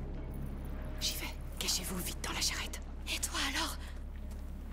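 A young woman speaks urgently in a low voice.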